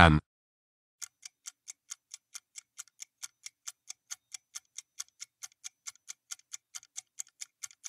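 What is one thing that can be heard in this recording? A clock ticks quickly and steadily.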